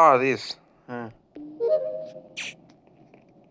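A game panel opens with a short electronic chime.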